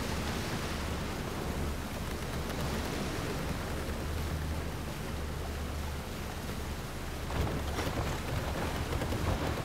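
A boat's engine hums low and steady.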